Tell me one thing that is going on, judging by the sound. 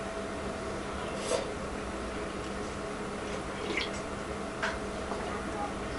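A woman slurps soup from a bowl.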